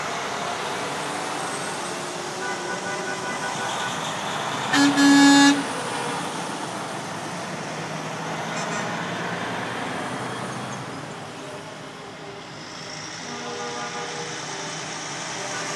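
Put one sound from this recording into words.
Heavy truck engines rumble as trucks drive past one after another.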